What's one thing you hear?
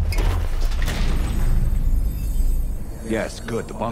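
A heavy metal door swings open.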